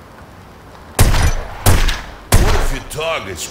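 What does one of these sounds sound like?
Gunshots ring out sharply, several times.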